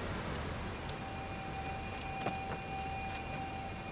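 Hands and boots knock softly on wooden beams while climbing.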